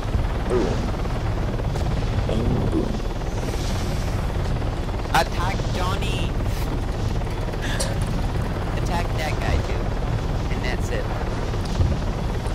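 A helicopter engine and rotor drone steadily from inside the cabin.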